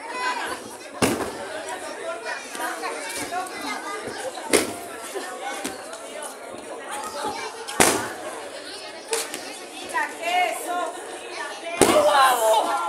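Bodies slam hard onto a wrestling ring mat.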